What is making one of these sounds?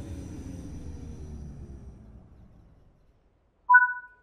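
A train's engine rumbles and winds down as it comes to a stop.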